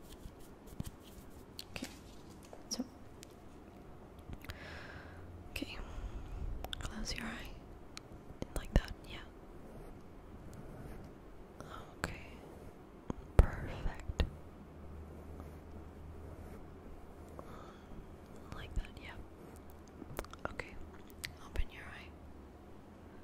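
A hand taps and brushes near a microphone in soft clicks.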